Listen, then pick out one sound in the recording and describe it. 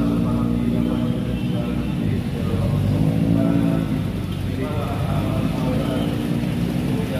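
Motorbike engines hum and buzz past along a busy street.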